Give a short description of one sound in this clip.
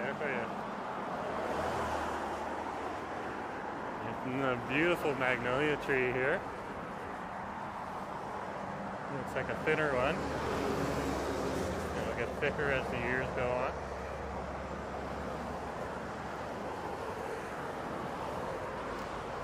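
Traffic rumbles steadily along a nearby road.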